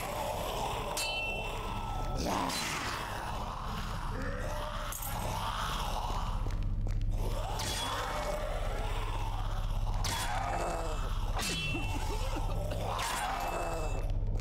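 Loud gunshots and metal impacts ring out.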